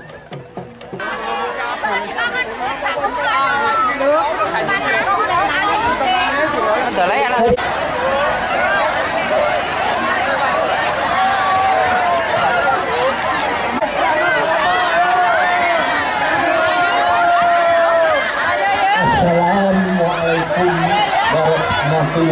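A large crowd of men and women chatters and shouts loudly outdoors.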